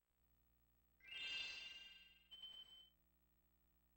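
A bright chiming jingle rings out and fades.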